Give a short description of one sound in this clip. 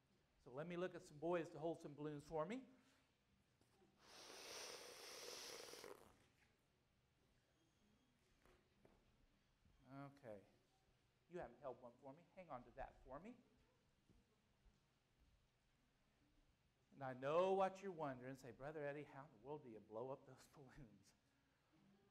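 A man speaks loudly to a gathering in a large echoing room.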